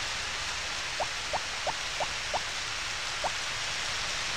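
Short game footsteps tap lightly.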